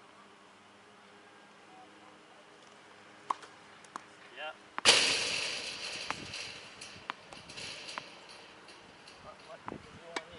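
Wheelchair wheels roll and rattle across a hard court.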